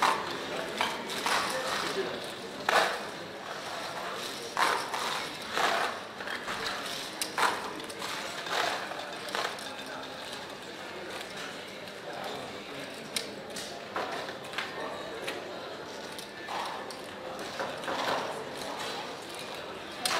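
Casino chips clatter and click as a dealer stacks and sweeps them.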